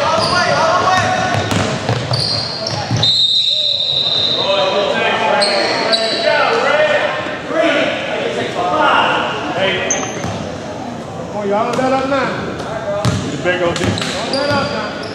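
Young men shout and call out across a large echoing gym.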